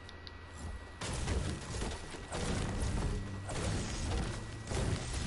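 A pickaxe strikes wood with repeated chopping thuds.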